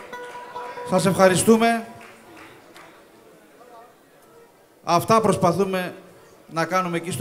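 A man sings loudly into a microphone in bursts, heard through loudspeakers in a large room.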